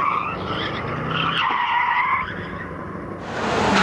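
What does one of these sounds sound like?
Tyres screech on the tarmac.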